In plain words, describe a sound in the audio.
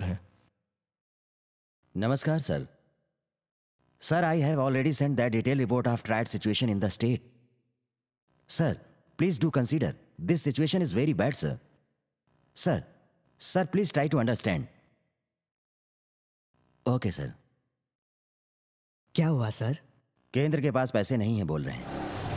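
A man speaks firmly, in short bursts with pauses.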